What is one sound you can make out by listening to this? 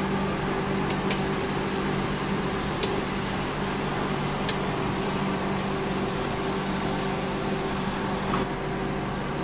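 Oil in a hot wok flares up and sizzles.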